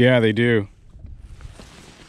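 A fishing reel whirs as its handle is wound.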